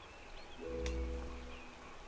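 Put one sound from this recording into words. Water splashes down a small waterfall.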